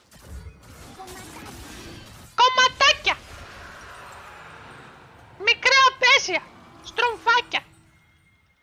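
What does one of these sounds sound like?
Game spell effects whoosh and chime.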